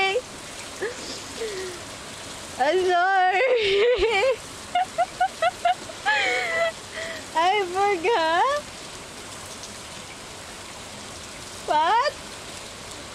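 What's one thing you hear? A young woman talks and squeals with animation into a close microphone.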